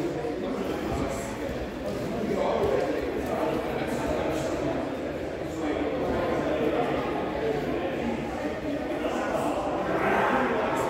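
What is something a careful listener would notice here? Many men and women talk at once in a large echoing hall.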